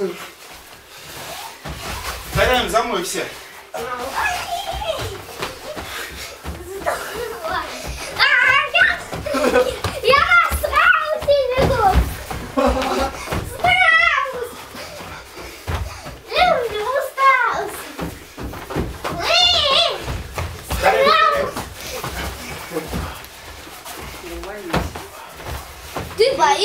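Feet thud and land on padded mats.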